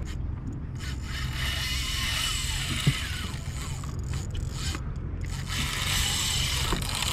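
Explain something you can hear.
A fishing reel whirs as line is wound in.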